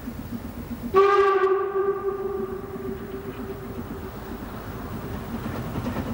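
A steam whistle blows loudly.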